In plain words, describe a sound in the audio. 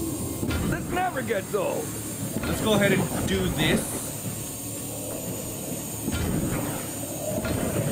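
Energy beams hum and crackle steadily.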